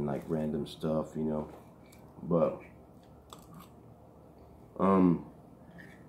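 A knife scrapes inside a jar.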